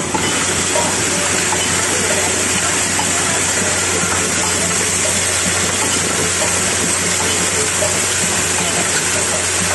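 Machinery hums and whirs steadily nearby.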